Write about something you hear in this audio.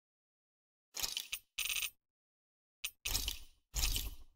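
Menu selections click and chime.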